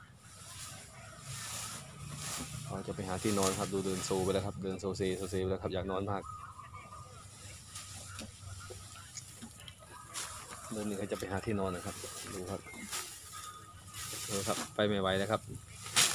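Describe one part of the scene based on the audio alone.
An elephant rustles and munches on grass nearby.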